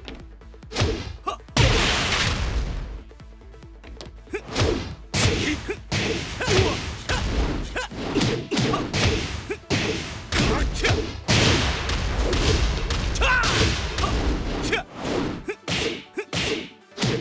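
Punches and kicks land with sharp, heavy thuds in quick bursts.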